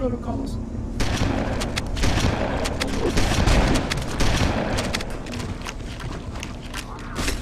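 Shotgun blasts boom loudly, one after another.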